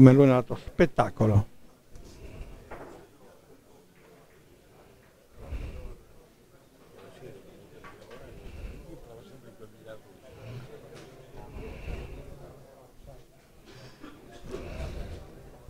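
Men murmur quietly in the background.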